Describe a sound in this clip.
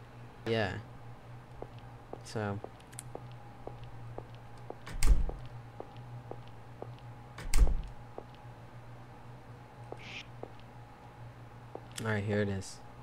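Light footsteps tap at a steady pace.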